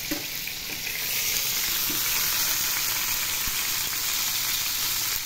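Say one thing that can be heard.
Meat sizzles in hot oil in a pan.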